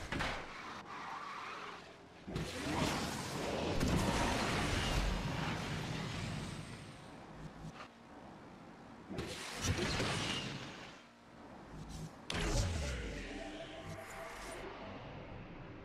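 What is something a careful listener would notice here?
A race car engine roars at high speed.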